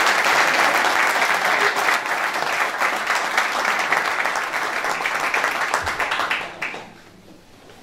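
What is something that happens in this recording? An audience claps loudly in a room.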